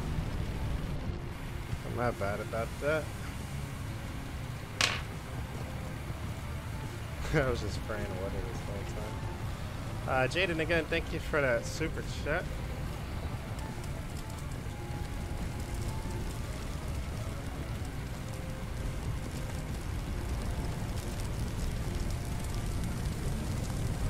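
Water sprays steadily from a fire hose.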